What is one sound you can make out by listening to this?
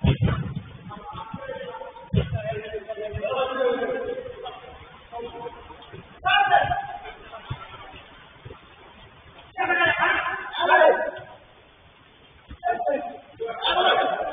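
Men shout to each other, heard from a distance.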